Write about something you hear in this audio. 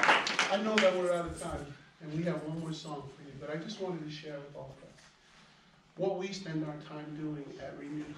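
A man speaks calmly through a microphone after the applause.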